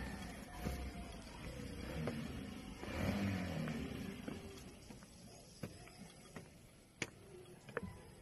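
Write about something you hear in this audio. Footsteps knock on wooden railway sleepers.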